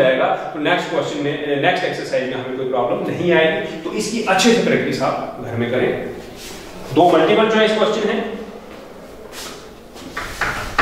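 A man speaks to a listener, explaining calmly.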